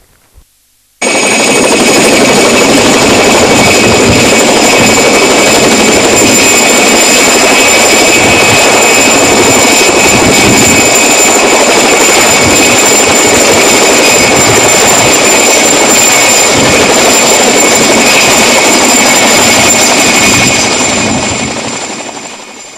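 A helicopter's rotor roars loudly and steadily overhead.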